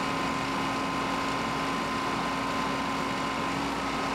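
A backhoe bucket scrapes into the soil.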